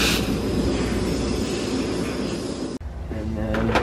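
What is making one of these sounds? A belt sander grinds loudly against a metal sheet.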